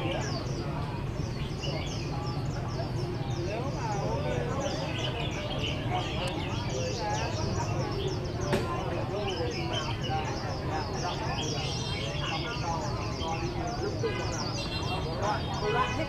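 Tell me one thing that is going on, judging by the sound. Many caged songbirds chirp and trill busily.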